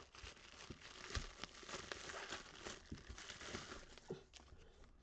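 Plastic wrap crinkles and rustles as hands tear it off.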